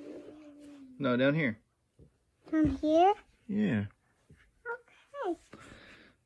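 A young child speaks close by in a high, lively voice.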